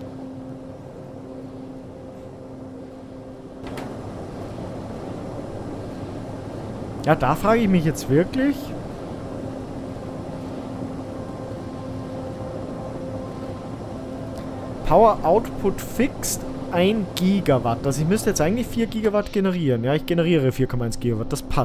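Machines hum steadily.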